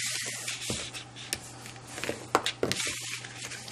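A stiff card taps and creases on a hard surface.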